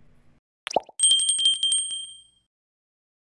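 A bell chimes brightly and fades.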